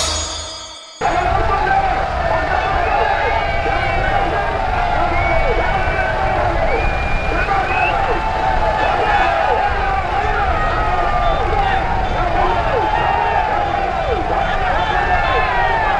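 A large crowd of men shouts and cheers together outdoors.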